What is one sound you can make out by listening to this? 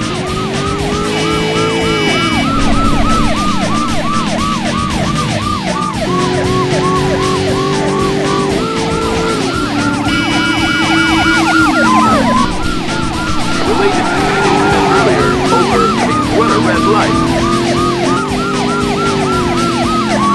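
A police siren wails rapidly and steadily.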